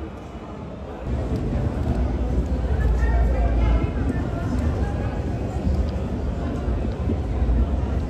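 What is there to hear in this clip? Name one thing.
Footsteps walk along pavement outdoors.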